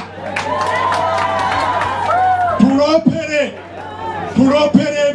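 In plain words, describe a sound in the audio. An elderly man sings into a microphone, heard through loudspeakers outdoors.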